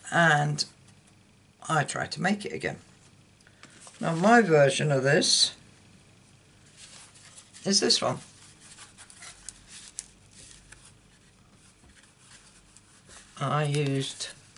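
Stiff paper rustles and slides as a folded card is handled.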